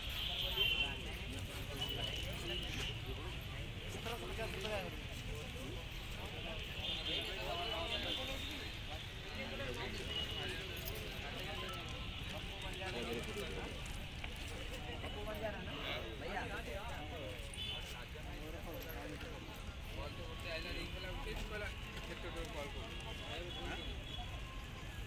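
A crowd of men and women chatter all around, outdoors.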